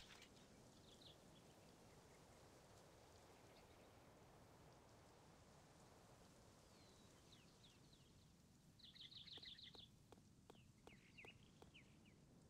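Keys click softly as someone types on a keyboard.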